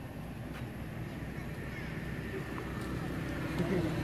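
A monkey hisses and chatters up close.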